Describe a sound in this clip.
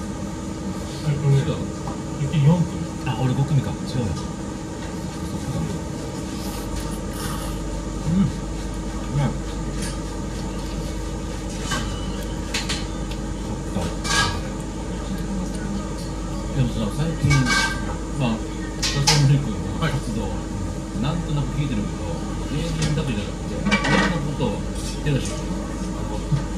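Chopsticks and spoons clink against bowls.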